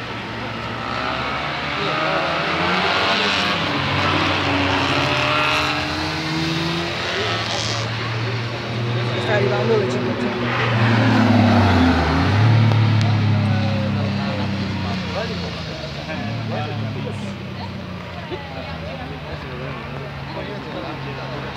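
Vintage car engines drone as the cars race round a circuit.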